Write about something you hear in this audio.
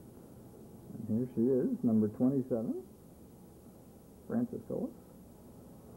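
A woman speaks in a friendly tone nearby.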